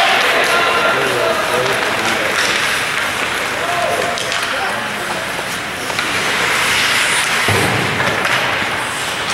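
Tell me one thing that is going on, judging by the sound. Skates scrape and hiss across ice.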